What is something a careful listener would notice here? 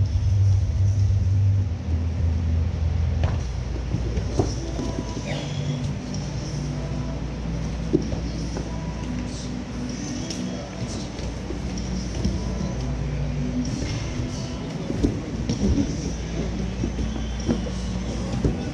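Bodies shuffle and thump on a padded mat in a large echoing room.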